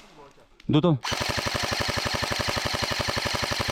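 An airsoft gun fires a rapid, steady burst.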